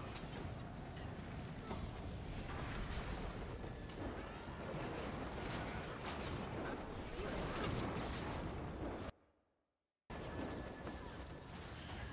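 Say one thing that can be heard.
Magic attacks crash and burst in quick succession.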